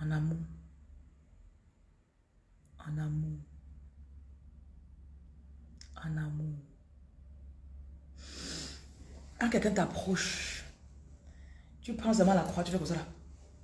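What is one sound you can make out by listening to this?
A woman speaks slowly and sadly in short phrases, close to the microphone.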